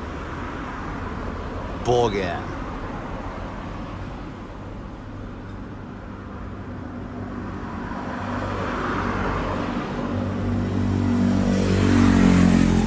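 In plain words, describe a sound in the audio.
Traffic hums steadily on a nearby road outdoors.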